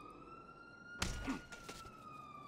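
A body and bicycle crash hard onto a ramp.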